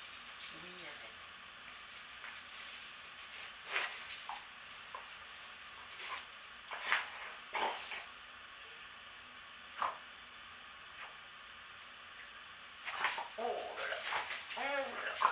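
Dogs whine and yelp playfully indoors.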